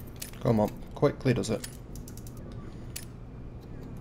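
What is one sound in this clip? A lock clicks as it is picked.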